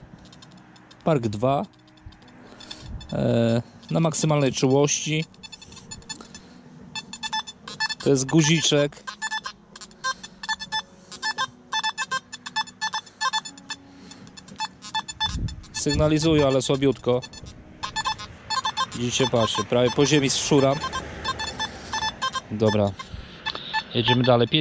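A metal detector gives off rising and falling beeps.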